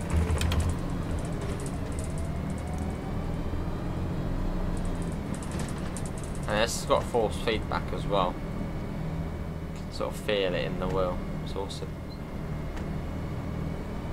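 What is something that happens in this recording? A bus engine hums steadily at low pitch.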